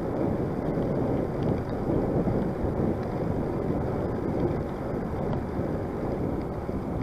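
Strong wind buffets and rumbles outdoors.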